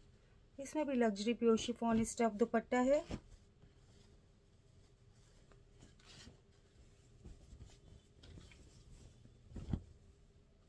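Fabric rustles softly as hands handle it.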